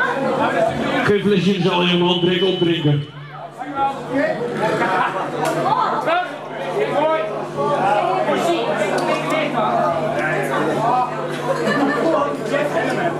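A band plays loud distorted rock music through amplifiers.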